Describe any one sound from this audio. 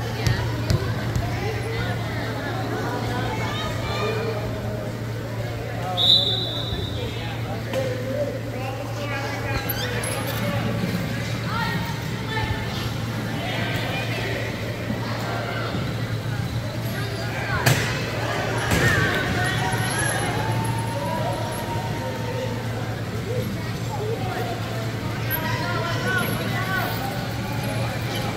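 Voices of players and onlookers echo around a large hall.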